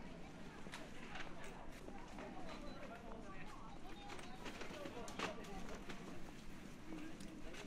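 A crowd of people chatters in a busy outdoor street.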